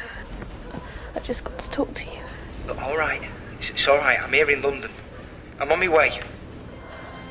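A young woman speaks softly on a phone, close by.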